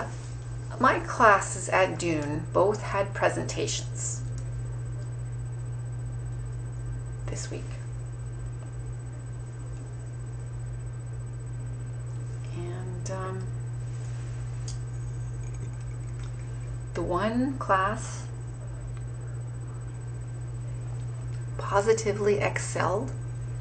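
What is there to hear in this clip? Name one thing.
A middle-aged woman speaks calmly and close by, in short bursts.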